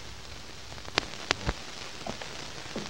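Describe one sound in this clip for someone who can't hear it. A door clicks and creaks open.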